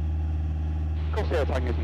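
A young man speaks over an aviation headset radio.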